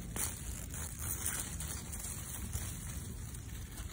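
A turnip is pulled from the soil with a soft rustle of leaves.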